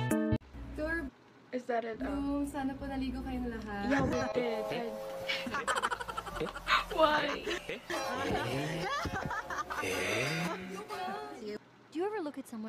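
Several young women talk and laugh excitedly through a small speaker.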